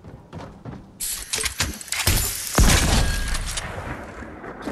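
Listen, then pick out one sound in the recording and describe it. Gunshots fire in rapid bursts and echo.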